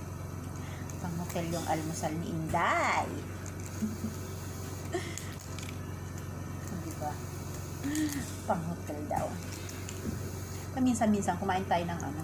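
A middle-aged woman talks casually close by.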